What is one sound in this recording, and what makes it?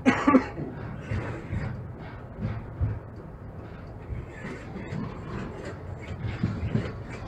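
Tram wheels clatter over rail joints.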